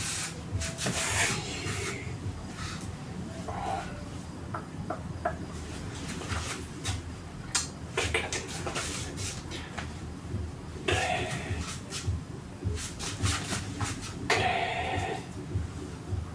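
A young man speaks briefly, close by.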